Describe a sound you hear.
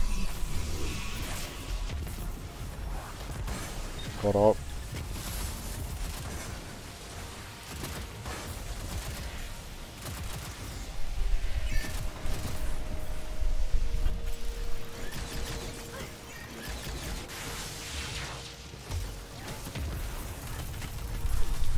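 Rapid gunfire blasts and crackles.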